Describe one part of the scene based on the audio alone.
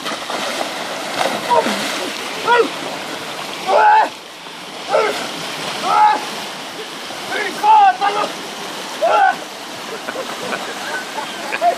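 Water sloshes and churns as a man wades through it.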